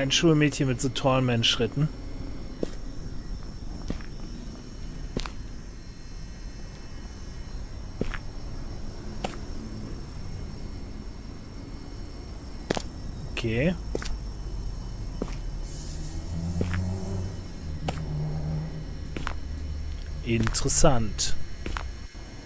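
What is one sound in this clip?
A middle-aged man speaks into a headset microphone with animation.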